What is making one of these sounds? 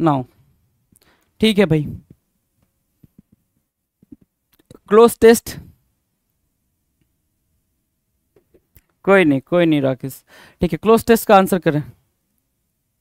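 A young man speaks with animation into a close microphone, in short bursts.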